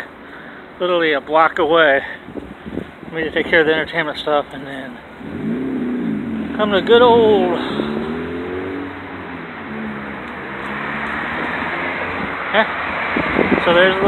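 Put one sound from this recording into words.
A middle-aged man talks with animation close to a phone microphone.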